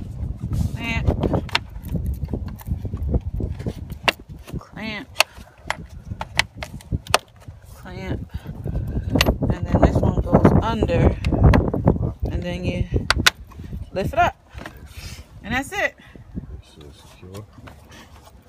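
Hard plastic parts click and knock as they are handled.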